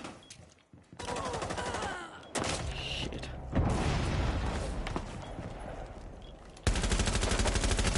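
Automatic gunfire rattles in rapid, loud bursts.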